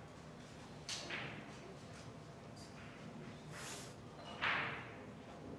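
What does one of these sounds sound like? Snooker balls click against each other on a table.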